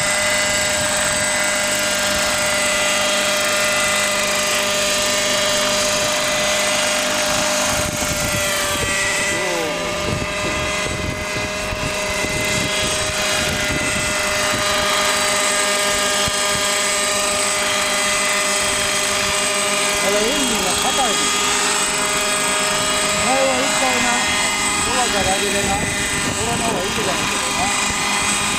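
A model helicopter's engine whines steadily with a high buzz.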